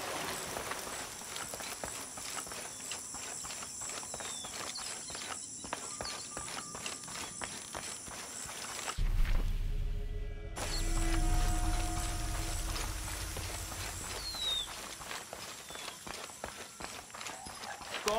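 Footsteps crunch quickly on dirt and stone.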